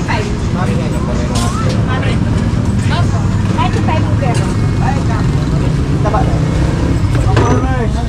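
A ladle clatters against metal pots.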